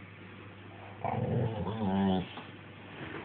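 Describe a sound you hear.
A dog lets out a short, whining growl close by.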